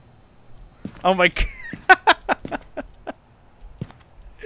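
A young man laughs loudly.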